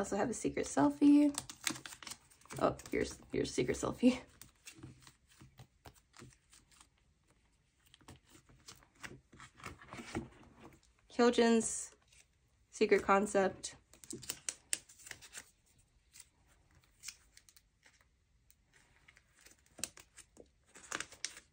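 A card scrapes softly as it slides into a plastic sleeve.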